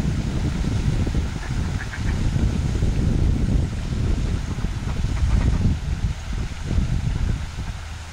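Ducks splash and paddle in the water close by.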